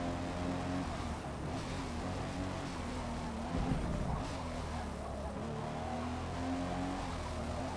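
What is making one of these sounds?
A car engine slows and drops in pitch while braking.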